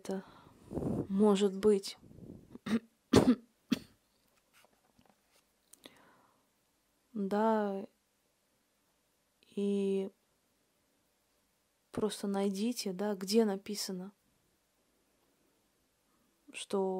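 A young woman sings close by in short phrases.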